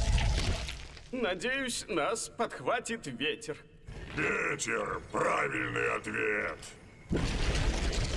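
An animated young male voice speaks with excitement.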